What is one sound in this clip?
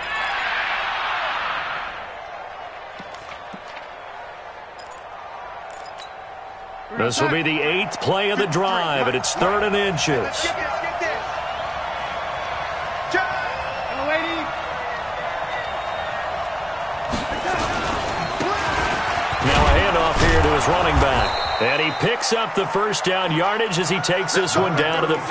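A large stadium crowd murmurs and roars.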